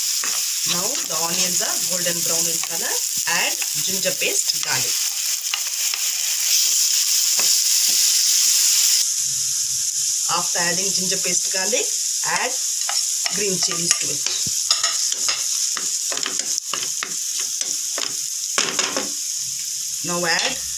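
A wooden spatula stirs and scrapes in a nonstick pan.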